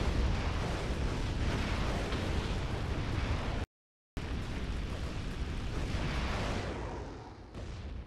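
Explosions and laser blasts crackle and boom in a video game.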